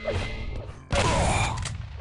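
Video game gunfire crackles.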